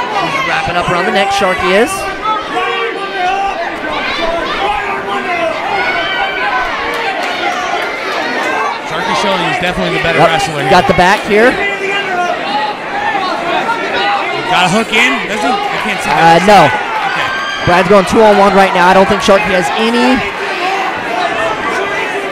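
A crowd of men and women shouts and cheers loudly.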